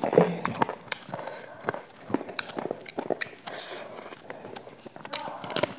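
A young woman chews and smacks her lips loudly, close to a microphone.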